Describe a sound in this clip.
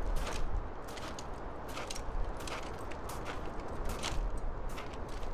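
Footsteps tap on stone paving at a steady walking pace.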